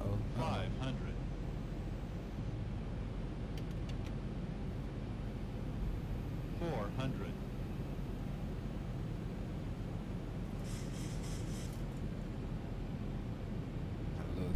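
A steady low jet engine drone fills a cockpit.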